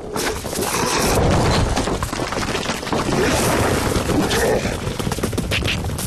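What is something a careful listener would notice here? Rocks crash and tumble down a cliff.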